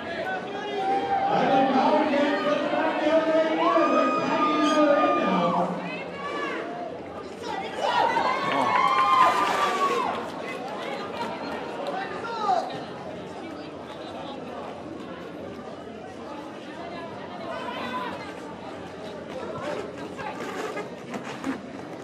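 Roller skates roll and scrape on a hard floor.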